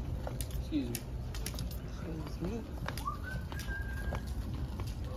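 A shopping cart rolls with a low rumble and rattles.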